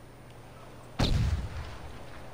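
A sniper rifle fires a single loud shot.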